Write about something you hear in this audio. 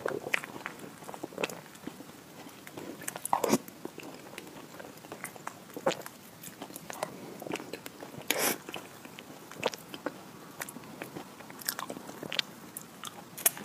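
A spoon scrapes and clinks against a dish.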